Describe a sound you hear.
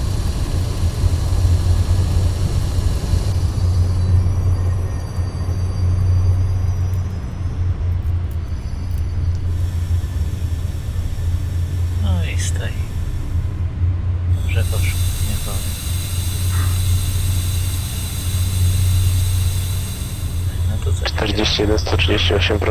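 A train engine hums low and steadily.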